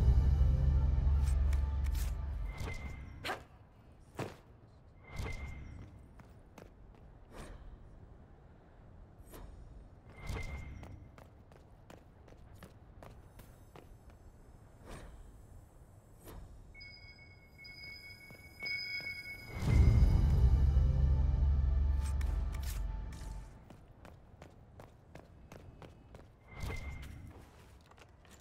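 Footsteps tap quickly on stone paving.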